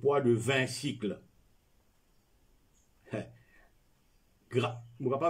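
An elderly man reads aloud calmly and close by, with pauses.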